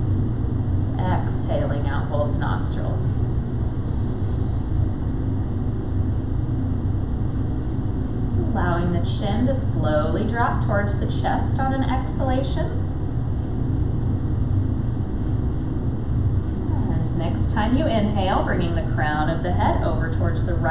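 A woman speaks calmly and slowly, in pauses, close by.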